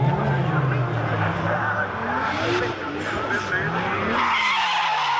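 A car engine revs hard and rises and falls in pitch.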